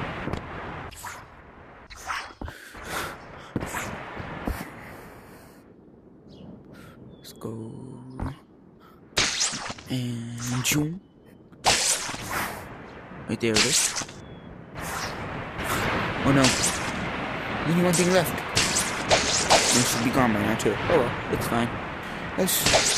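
Wind whooshes past in rushing bursts.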